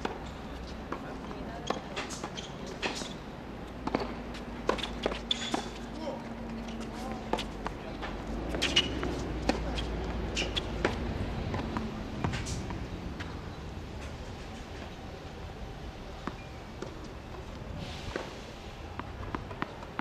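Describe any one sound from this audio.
Tennis balls are struck with rackets, with sharp pops.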